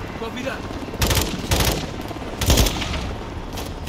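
A machine gun fires bursts of shots.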